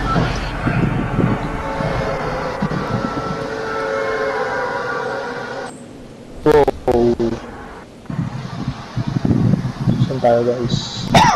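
Wind rushes steadily past a figure falling through the air.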